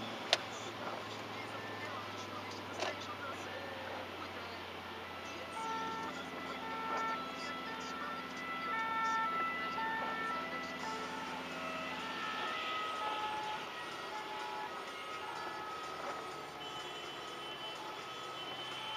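Rain patters on the windscreen.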